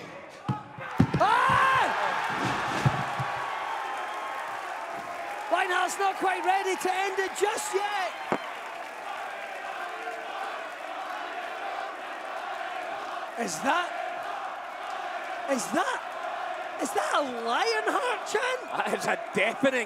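A large crowd cheers and shouts in an echoing hall.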